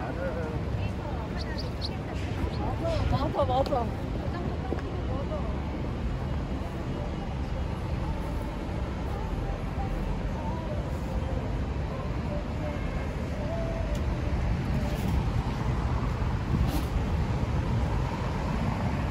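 Traffic rumbles steadily in a city street outdoors.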